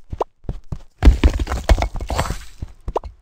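A brick wall crashes and breaks apart.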